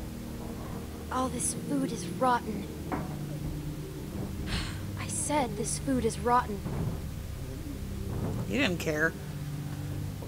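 A young girl speaks quietly and tensely, close by.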